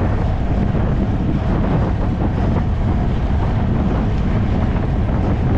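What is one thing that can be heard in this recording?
Wind rushes and buffets loudly against a moving bicycle.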